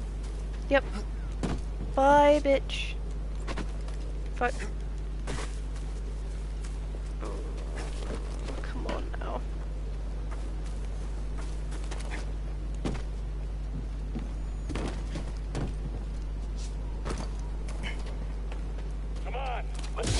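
Footsteps scuff and thud on stone.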